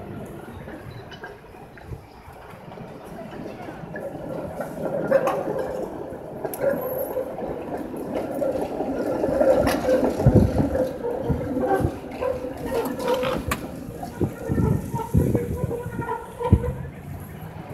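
A tram rumbles past over the rails.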